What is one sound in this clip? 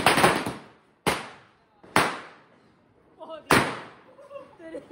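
Firecrackers burst with loud bangs outdoors.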